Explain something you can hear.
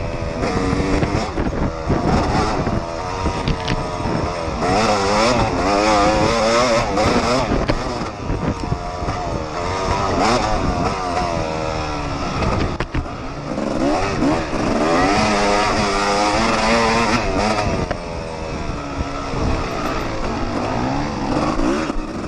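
A dirt bike engine revs up and down close by, rising and falling in pitch.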